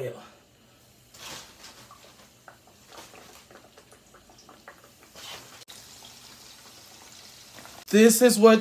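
Hot oil sizzles and crackles as food fries.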